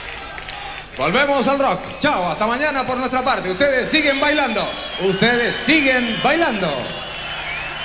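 A man sings loudly over loudspeakers in a large hall.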